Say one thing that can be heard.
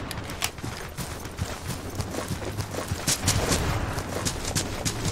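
Footsteps tread quickly over dry grass.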